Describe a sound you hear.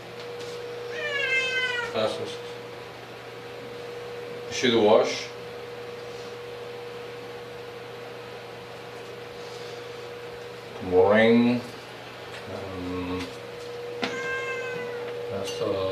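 A cat meows nearby.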